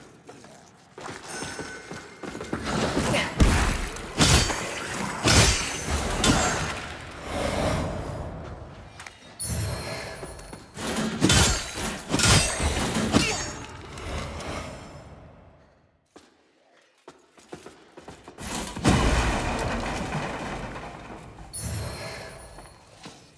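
A sword swings and strikes with heavy thuds and crashes.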